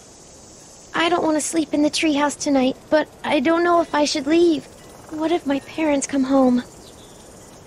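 A young girl speaks softly and hesitantly.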